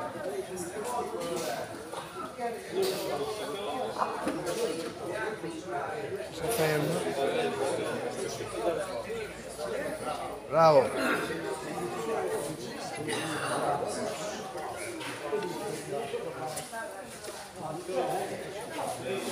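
Several men and women talk casually nearby in a large echoing hall.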